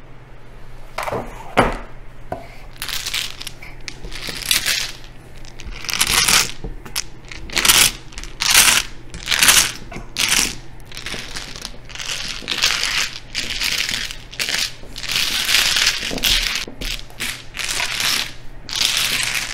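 Mahjong tiles clatter and rattle as hands shuffle them on a table.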